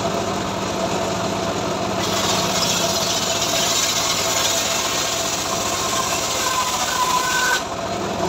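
An engine drones steadily.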